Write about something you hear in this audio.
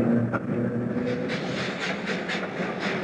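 A steam locomotive chugs past.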